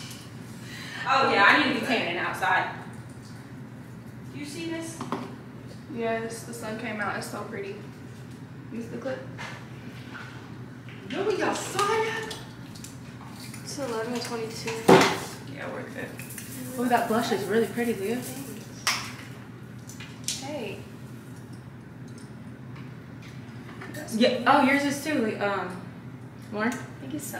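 Two young women talk casually nearby.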